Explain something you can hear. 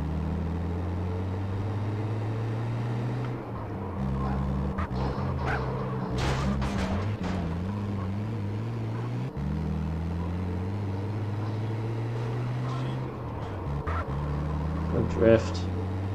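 A car engine hums steadily as it drives along.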